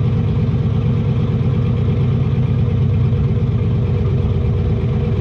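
A loud race car engine idles with a deep, rough, pulsing rumble from close by.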